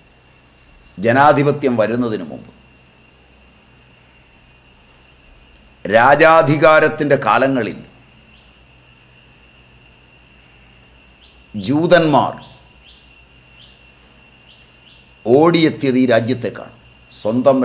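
An elderly man speaks calmly and thoughtfully, close by, pausing between phrases.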